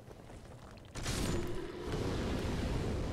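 Fire bursts with a whoosh.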